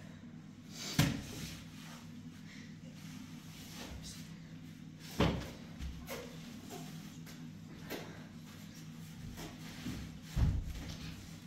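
Bedding rustles and thumps.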